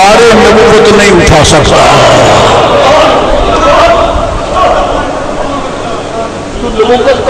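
An elderly man preaches with animation into a microphone, heard through a loudspeaker in an echoing hall.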